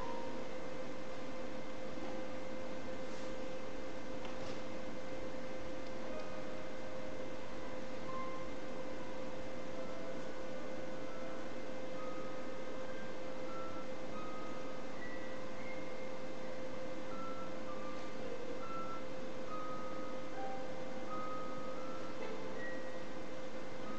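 A clarinet plays soft, sparse held notes.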